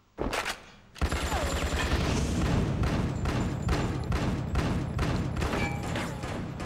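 Automatic gunfire rattles rapidly in an echoing space.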